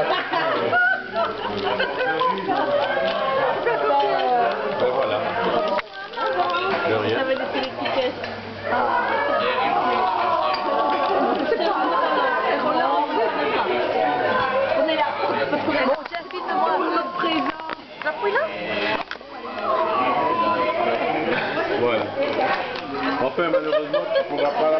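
A crowd of adults chatters loudly in a busy room.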